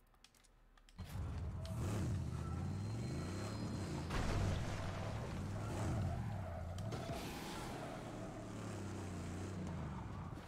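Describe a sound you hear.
A car engine roars and revs as the car speeds over dirt.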